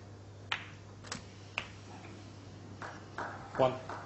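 Snooker balls knock together with a click.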